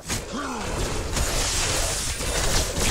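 Energy blasts whoosh and crackle in a video game.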